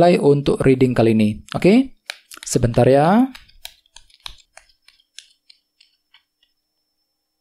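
Small objects click and tap against a table as hands handle them.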